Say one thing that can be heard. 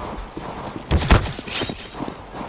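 A knife slashes and stabs with a sharp, wet thud.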